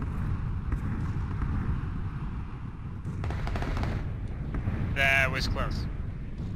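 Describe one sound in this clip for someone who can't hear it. Boots thud steadily on a hard floor.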